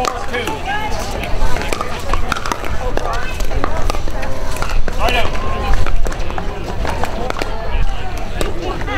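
Paddles pop against a plastic ball.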